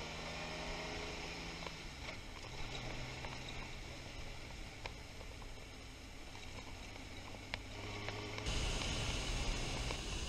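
A motorcycle engine hums steadily while riding, rising in pitch as it speeds up.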